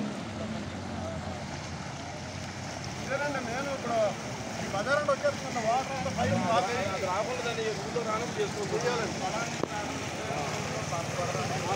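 Feet splash and wade through shallow water.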